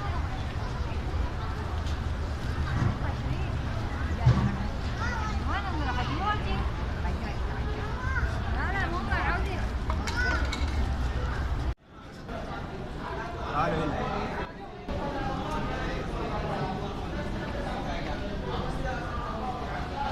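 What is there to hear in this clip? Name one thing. A crowd of people chatters nearby.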